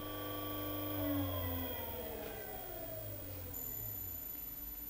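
An electric motor winds down and falls quiet.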